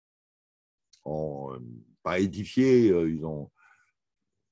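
An elderly man speaks calmly, heard through a recording.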